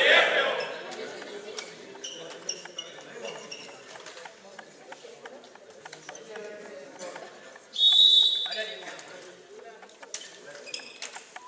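Young players chatter and call out in a large echoing hall.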